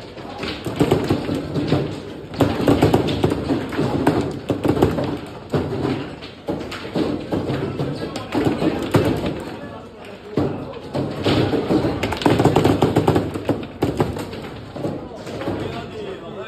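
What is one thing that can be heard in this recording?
Foosball rods spin and clatter as a ball knocks against plastic players.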